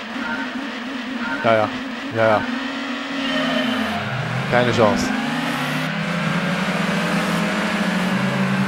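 A racing car engine hums steadily and shifts pitch as it drives.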